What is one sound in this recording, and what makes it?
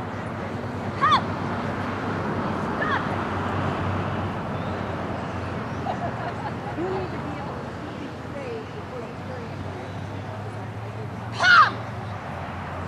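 A young woman shouts short commands outdoors, some way off.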